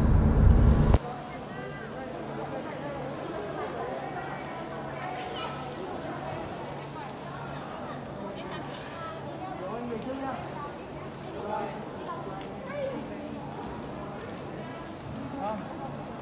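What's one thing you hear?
Voices of several people murmur in a large echoing hall.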